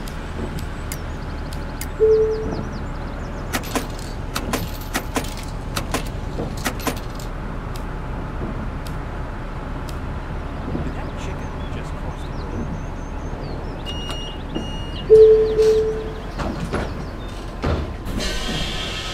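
A bus engine hums low and steady.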